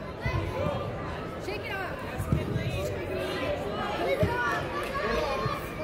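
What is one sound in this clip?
Girls and spectators shout and cheer in a large echoing hall.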